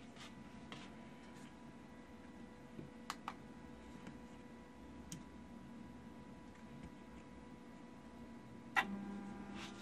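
Small switches click.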